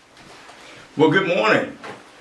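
An older man speaks up close, with animation.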